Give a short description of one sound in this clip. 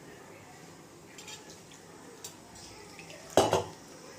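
Water trickles from a small metal bowl into flour.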